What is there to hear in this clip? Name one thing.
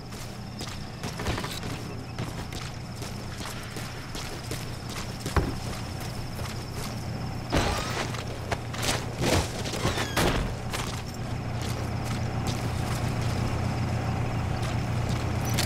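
Footsteps crunch quickly on dirt ground.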